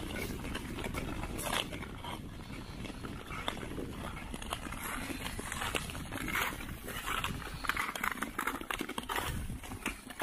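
Ice skate blades scrape and swish rhythmically across ice.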